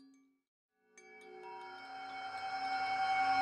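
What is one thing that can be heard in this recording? A singing bowl is struck and its ringing tone swells.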